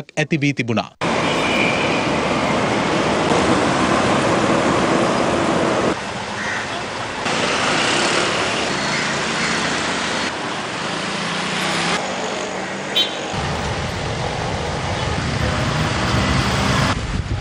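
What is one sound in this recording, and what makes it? Traffic rumbles past steadily on a busy road.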